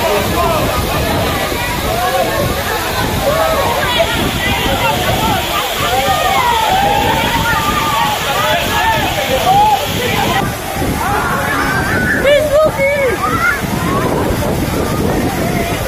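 A crowd of young women shout and sing excitedly nearby.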